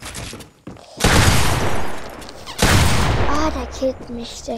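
Gunfire blasts loudly in two short bursts.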